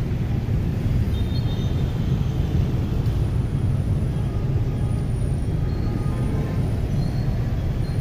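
Motorbikes and cars pass by on a street nearby.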